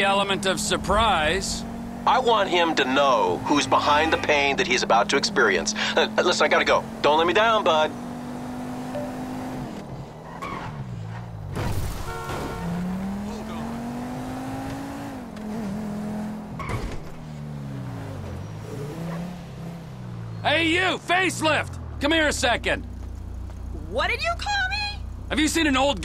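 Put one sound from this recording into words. A car engine drones, rising and falling in pitch as the car accelerates and slows.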